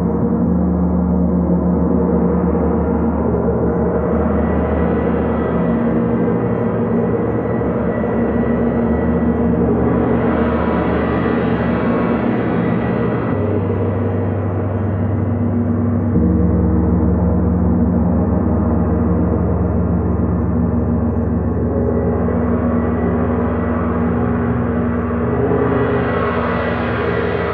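A player softly strikes the gongs with a mallet.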